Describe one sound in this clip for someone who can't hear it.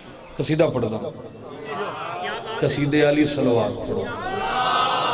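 A man speaks forcefully into a microphone through a loudspeaker.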